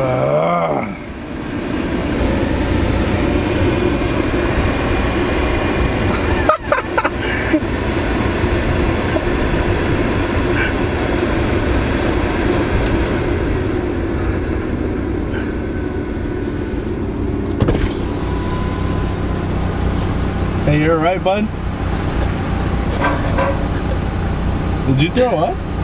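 A car drives along with a steady low road rumble.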